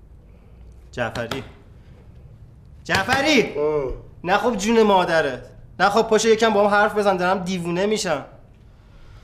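A young man speaks emotionally and pleadingly, close by, his voice breaking.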